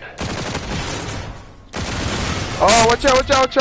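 A rapid-fire gun shoots in loud bursts.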